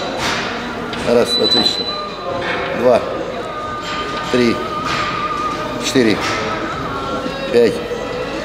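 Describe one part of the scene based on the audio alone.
A man grunts and breathes hard with effort.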